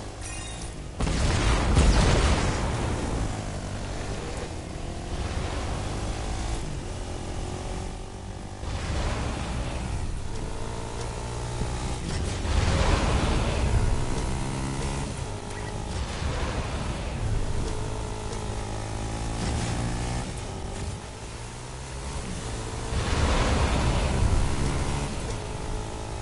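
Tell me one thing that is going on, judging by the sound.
A vehicle boost roars in loud surges.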